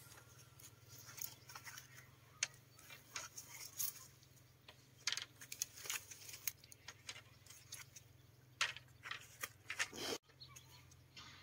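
Dry bamboo strips rustle and scrape against each other.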